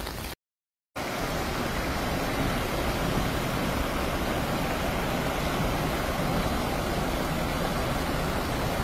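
A heavy truck engine rumbles close by.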